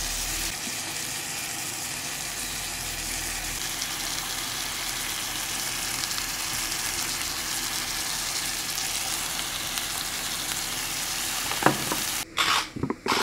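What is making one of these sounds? Chicken and onions sizzle in a frying pan.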